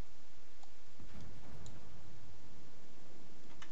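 Heavy guns fire with a deep, rumbling boom.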